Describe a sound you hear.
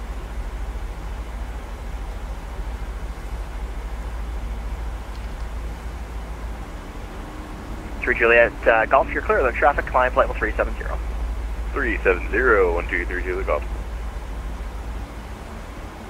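A low engine hum drones steadily.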